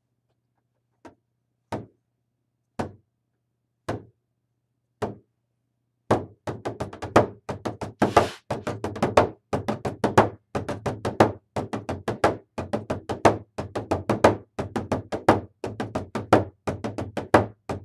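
A large frame drum booms with slow single beats, then a fast steady rhythm.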